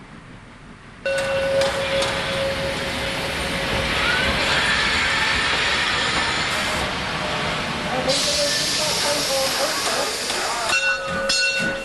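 A steam locomotive vents steam with a loud hiss.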